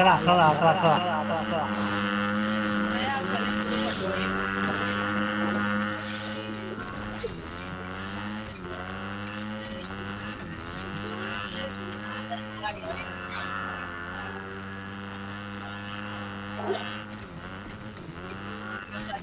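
A motorbike engine hums steadily and revs up and down.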